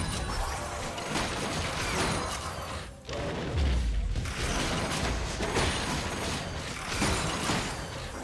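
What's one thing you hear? Game characters' weapons clash with sharp hits.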